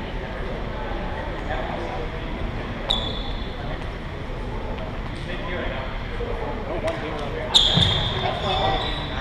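Young people chatter in a large echoing hall.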